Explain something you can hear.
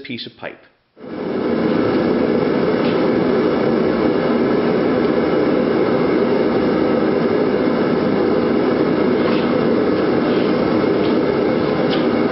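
A gas torch roars steadily.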